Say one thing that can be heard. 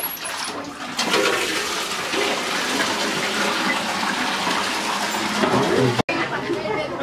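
Water splashes and runs.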